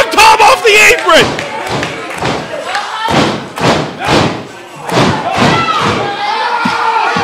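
A crowd claps hands loudly in quick bursts.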